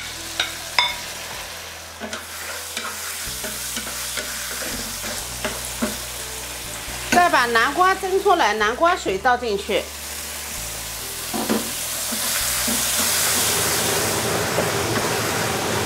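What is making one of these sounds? A spatula scrapes and taps against a metal pan.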